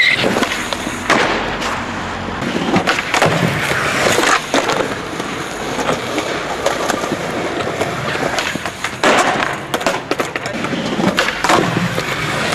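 A skateboard clacks and slaps down hard on landing.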